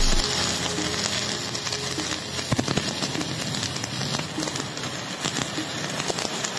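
An electric welding arc crackles and sizzles steadily.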